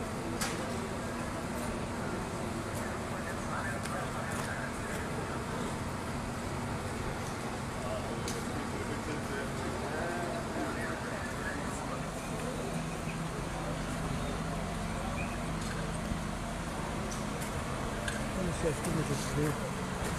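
Fire engines idle with a steady low rumble.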